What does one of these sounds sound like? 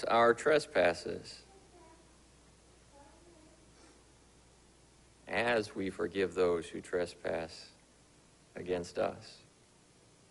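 A man reads aloud slowly through a microphone in a room with a slight echo.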